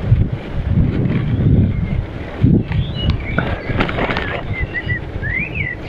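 Bicycle tyres roll over a rough path.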